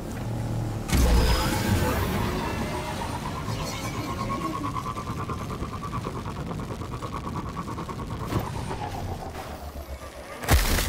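A vehicle engine hums and whines steadily as it speeds along.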